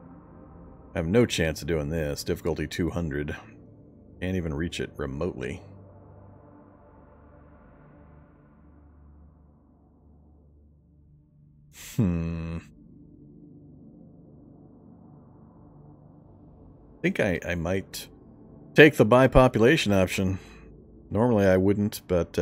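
A man talks in bursts, close to a microphone.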